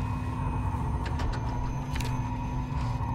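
Paper rustles as a hand lifts a sheet.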